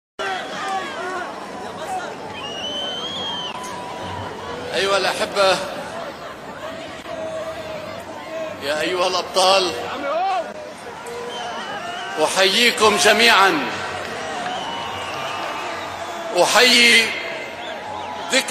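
An elderly man gives a forceful speech through a loudspeaker outdoors.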